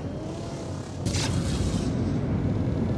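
A sudden rushing whoosh bursts as a spaceship boosts.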